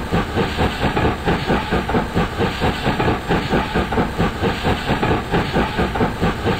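A steam engine chuffs in a steady, quick rhythm.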